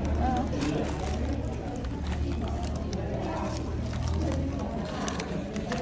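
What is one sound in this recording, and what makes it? Paper banknotes rustle as hands handle them.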